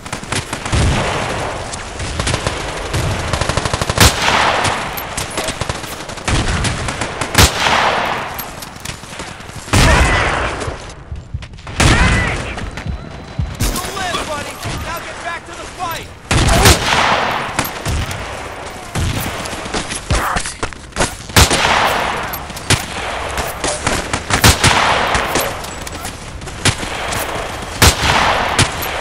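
Rifle shots crack loudly, each followed by a rolling echo.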